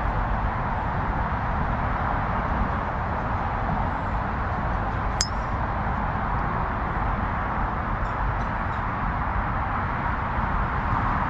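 Wind blows steadily across an open outdoor space.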